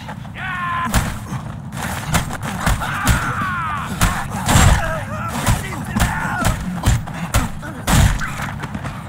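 Punches thud as men brawl in a fistfight.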